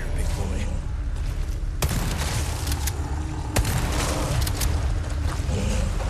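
A pistol fires in sharp, rapid shots.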